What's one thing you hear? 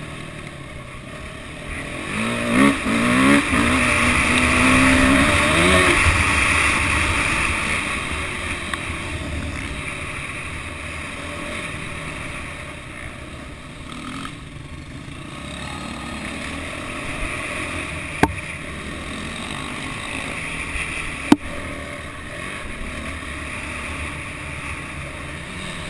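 A motorbike engine roars and revs up and down close by.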